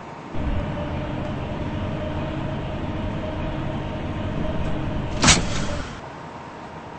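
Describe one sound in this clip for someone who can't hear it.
A train rumbles along the rails, then stops.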